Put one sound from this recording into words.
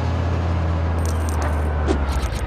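Coins jingle as they are picked up.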